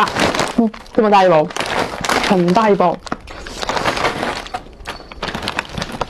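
A plastic snack bag crinkles and rustles.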